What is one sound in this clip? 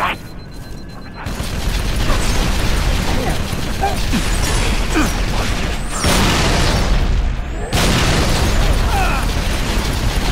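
A hovering vehicle's engine hums and whines.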